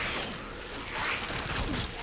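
A magic burst whooshes and rings out.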